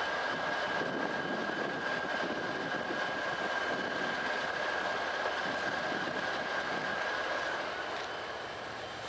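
A freight train rolls past, steel wheels clattering on the rails.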